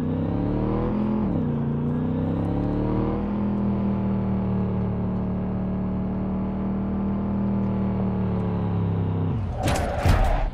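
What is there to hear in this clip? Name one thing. A car engine hums steadily, rising and falling in pitch as it drives.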